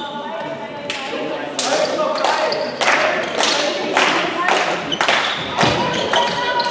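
A ball bounces loudly on a wooden floor in a large echoing hall.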